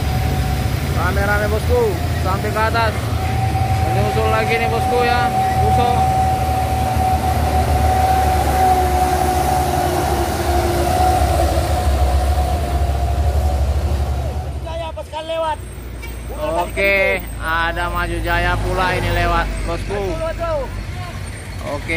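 A man calls out loudly near the road.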